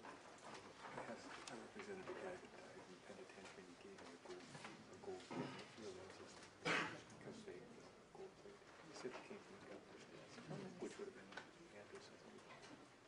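A crowd of men and women murmurs and chatters.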